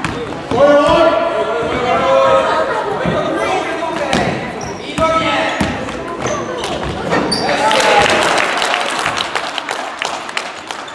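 Young boys shout to each other in a large echoing hall.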